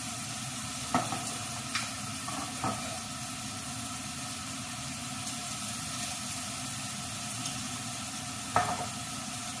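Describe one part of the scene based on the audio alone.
Glass bottles clink against a counter.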